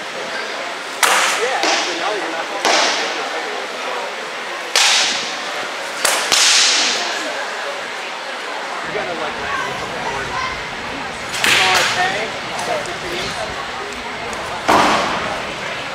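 Wooden weapons strike shields with sharp cracks.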